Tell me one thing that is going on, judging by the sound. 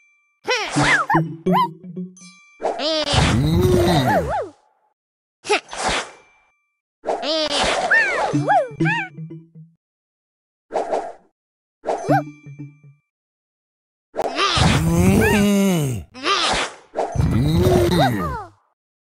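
Cheerful game chimes and swooping effects play in short bursts as pieces match and pop.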